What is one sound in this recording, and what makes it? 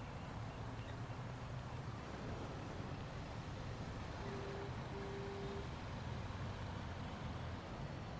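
City traffic hums steadily.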